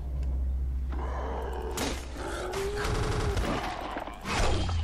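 A man groans hoarsely close by.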